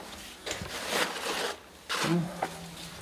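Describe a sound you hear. Debris rustles and clatters as a hand rummages through it.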